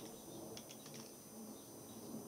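Keys clatter on a computer keyboard.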